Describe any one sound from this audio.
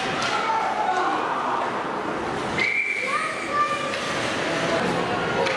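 Young players shout to each other across the rink.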